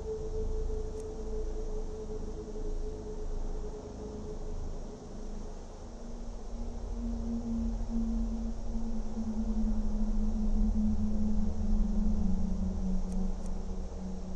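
A soft menu click sounds.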